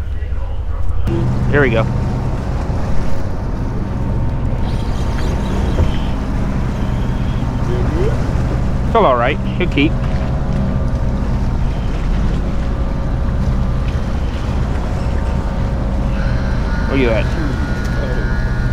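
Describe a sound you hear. Water laps against a wall.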